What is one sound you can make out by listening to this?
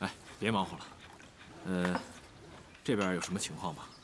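Water pours from a kettle into a cup.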